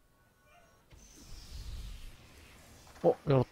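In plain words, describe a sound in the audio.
A magic spell shimmers and whooshes.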